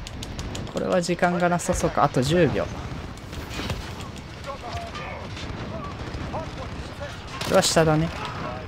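Rapid gunshots crack and pop.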